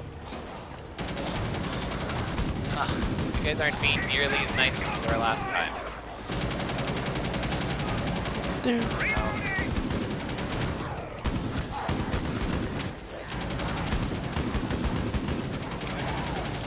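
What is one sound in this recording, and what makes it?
Rapid gunfire bursts ring out close by.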